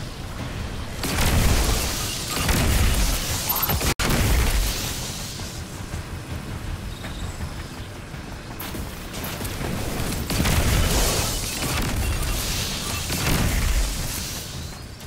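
Energy blasts crackle and explode in bursts.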